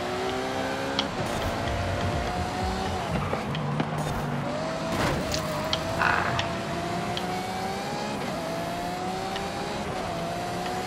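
A sports car engine roars at high revs, its pitch rising and dropping back at each gear change.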